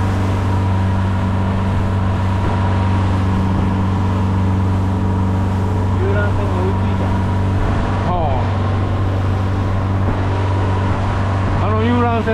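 Wind buffets loudly.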